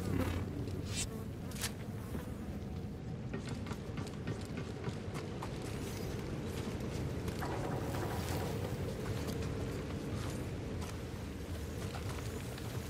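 Footsteps crunch on gravel and rock.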